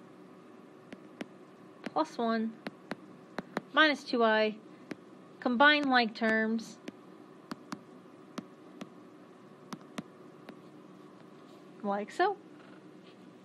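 A stylus taps and clicks on a glass tablet.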